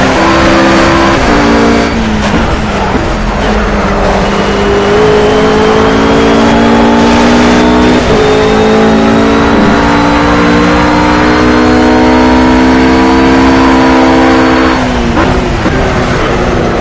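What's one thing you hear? A GT3 race car engine howls at full throttle.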